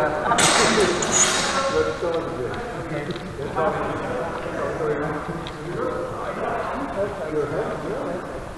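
Shoes squeak and thud on a hard floor.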